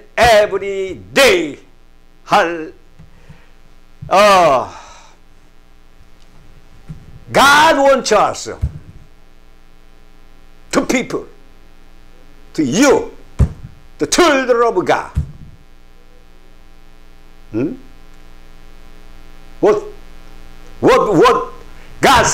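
An elderly man speaks with emphasis into a microphone, in bursts with long pauses.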